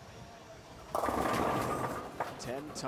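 Bowling pins crash loudly as a ball strikes them.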